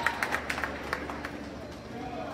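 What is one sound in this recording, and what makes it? A basketball bounces sharply on a hard floor, echoing in a large hall.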